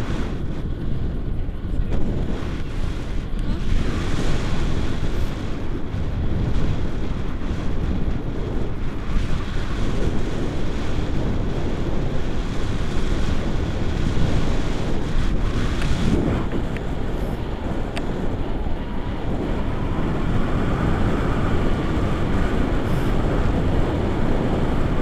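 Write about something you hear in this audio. Strong wind gusts and rumbles across the microphone outdoors.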